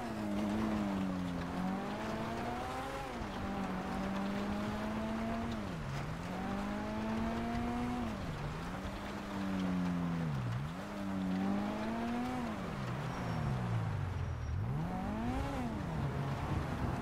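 A car engine hums and revs up and down as the car drives.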